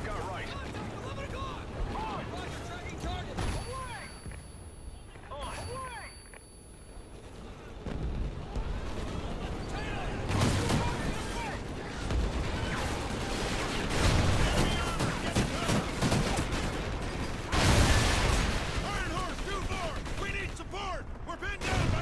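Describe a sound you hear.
Rapid gunfire cracks and rattles.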